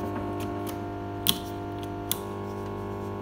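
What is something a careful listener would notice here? Push buttons on a radio click as a finger presses them.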